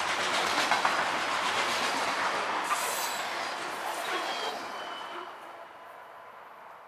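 Freight cars rumble and clatter past on the rails, then fade into the distance.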